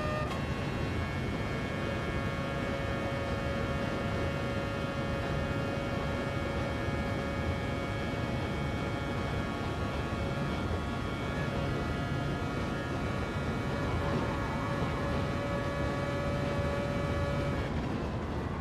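A racing car engine roars at a high, steady pitch.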